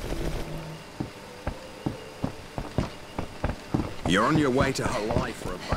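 Footsteps run quickly across hollow wooden boards.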